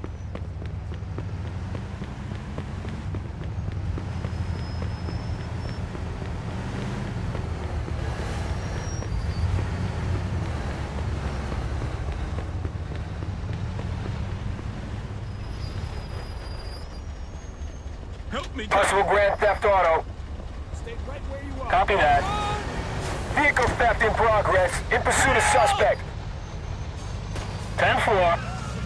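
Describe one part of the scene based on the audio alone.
Car engines hum steadily in passing traffic.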